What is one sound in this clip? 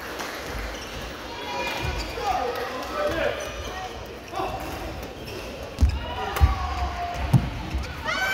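Shoes squeak on a sports floor.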